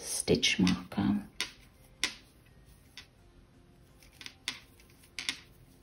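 A crochet hook softly clicks and rustles through yarn.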